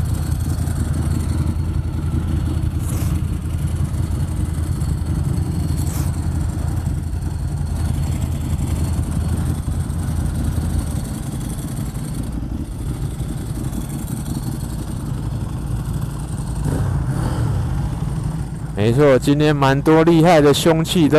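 A motorcycle engine idles with a low, steady rumble close by.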